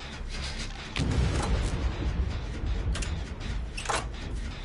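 A machine clanks and rattles.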